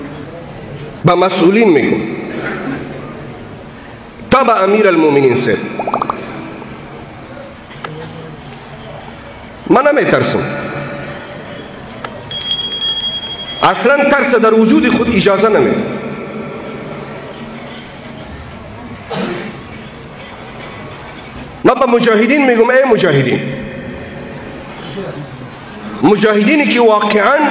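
A man preaches forcefully into a microphone, his voice echoing through loudspeakers.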